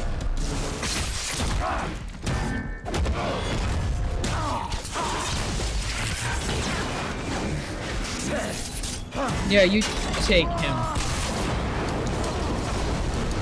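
Weapons clang and strike in a fast fight.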